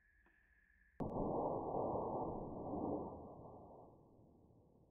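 A loud blast booms and rumbles away.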